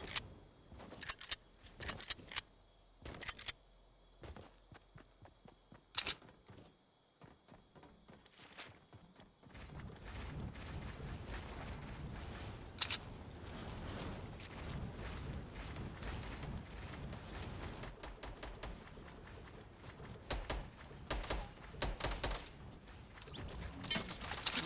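Building pieces snap into place with sharp clicks.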